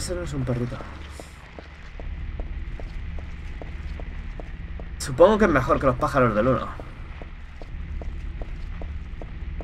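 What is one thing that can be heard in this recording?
Footsteps tap quickly and evenly on pavement.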